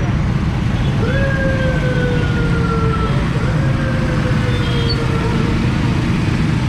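Vehicle horns honk nearby.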